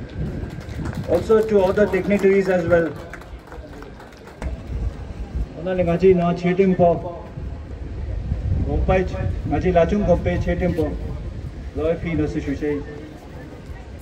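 A man speaks loudly outdoors, in drawn-out phrases.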